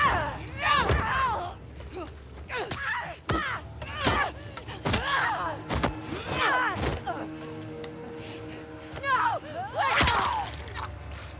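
Heavy blows thud and smack.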